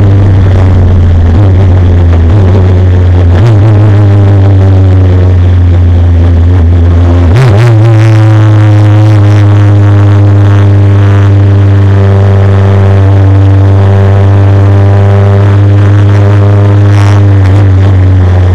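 A Formula Renault single-seater's four-cylinder engine roars at high revs, heard from onboard.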